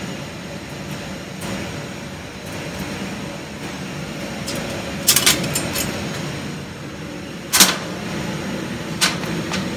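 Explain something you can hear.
A thin metal sheet rattles and clinks as a hand handles it.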